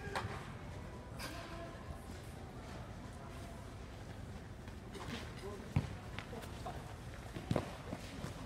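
Young players call out to each other in a large echoing hall.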